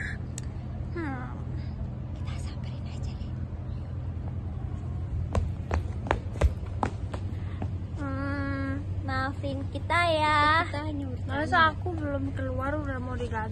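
Young women talk and laugh playfully close to a phone microphone.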